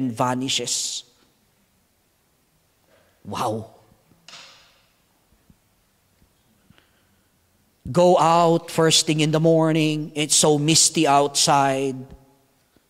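A man speaks with animation into a microphone, heard through a loudspeaker in a large echoing hall, with long pauses.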